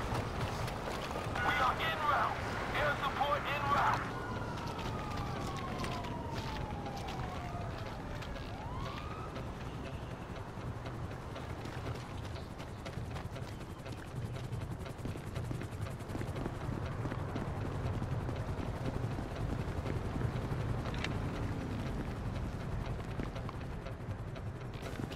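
Footsteps scuff along on concrete.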